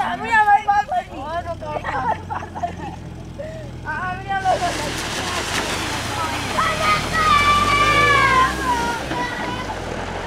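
Young people shout and scream excitedly.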